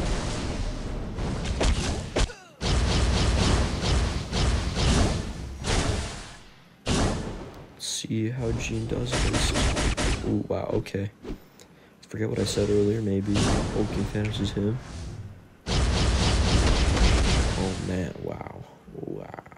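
Loud explosions boom and crackle.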